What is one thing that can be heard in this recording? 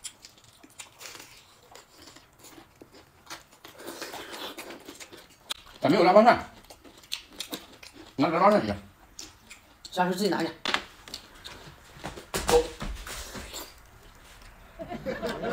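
A man crunches and chews crispy food close by.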